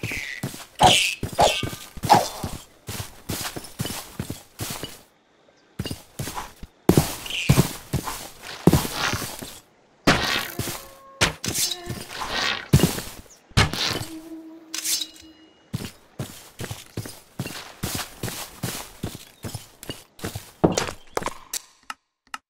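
Footsteps patter over grass in quick, even steps.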